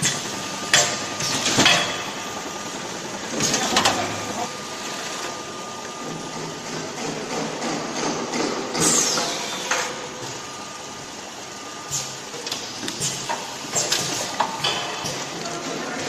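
Cardboard boxes clatter and thump along metal rollers.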